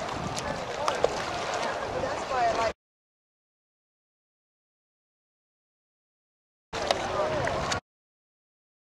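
Water splashes softly as feet wade through shallow water.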